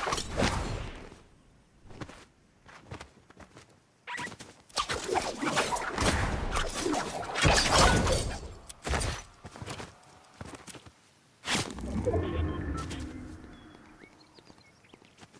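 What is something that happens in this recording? Footsteps crunch on grass and rock as a game figure runs.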